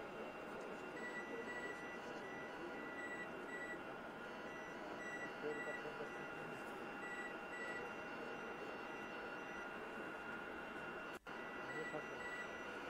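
Electronic instruments beep in a quick repeating pattern.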